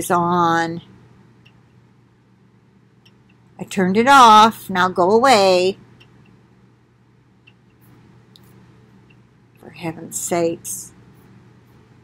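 An elderly woman speaks expressively in short bursts, close to a microphone.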